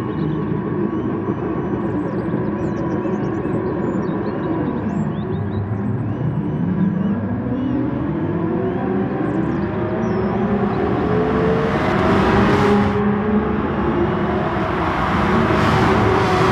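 Many racing car engines roar and rev together, growing louder.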